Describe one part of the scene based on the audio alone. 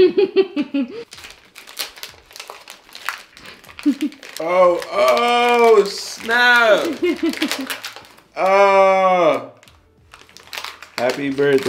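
Plastic wrapping crinkles in a young man's hands.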